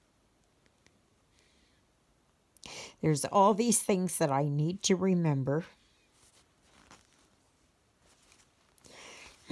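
Thread rasps softly as it is pulled through stiff canvas.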